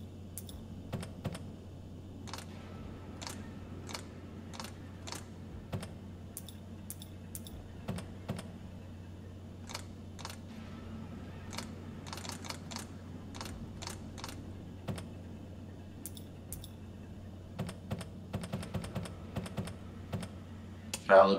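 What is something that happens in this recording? Switches click one after another.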